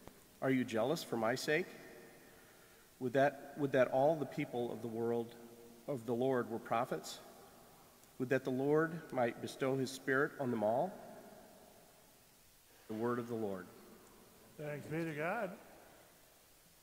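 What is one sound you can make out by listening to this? A middle-aged man reads out calmly through a microphone in an echoing room.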